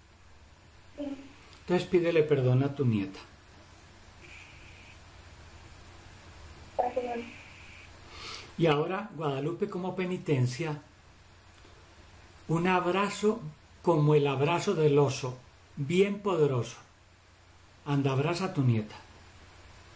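An elderly man speaks calmly and slowly over an online call.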